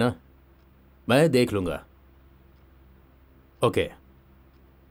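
A man talks calmly on a phone, up close.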